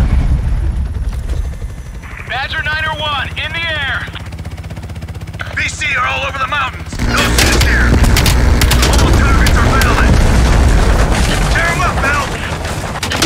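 A helicopter's rotor thumps steadily close by.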